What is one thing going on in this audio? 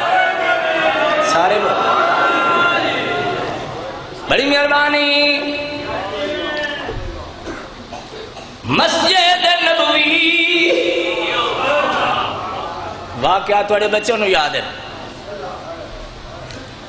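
A man chants loudly in a wailing voice over a loudspeaker in a large echoing space.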